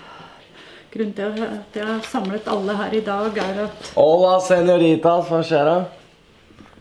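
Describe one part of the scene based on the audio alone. A middle-aged woman speaks calmly and close by.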